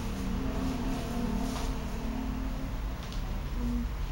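A cloth cape rustles and flaps as it is shaken out.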